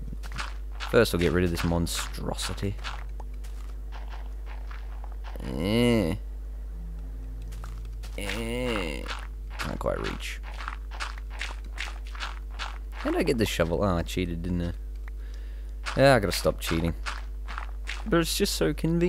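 A shovel digs through dirt with quick, repeated crunches.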